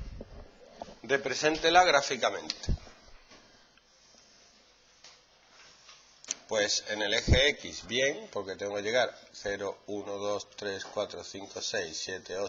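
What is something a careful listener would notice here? A man speaks calmly, like a lecturer, close by.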